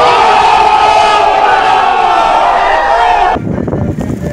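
A crowd of young people shouts and cheers loudly close by.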